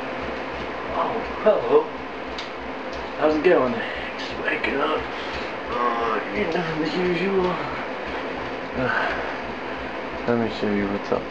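A young man talks playfully close by.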